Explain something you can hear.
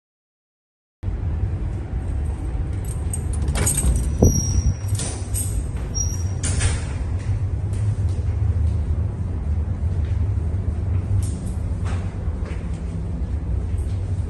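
A ship's engine drones low and steady.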